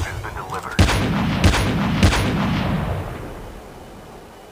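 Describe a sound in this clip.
Gunshots ring out in a few loud bursts and echo away.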